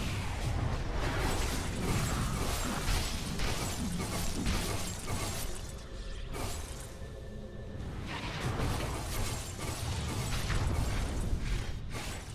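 Magic spells whoosh and crackle in a video game battle.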